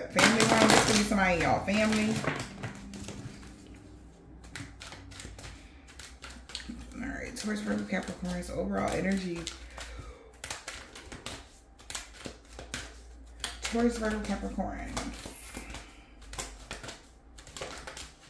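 Playing cards riffle and slap as they are shuffled by hand.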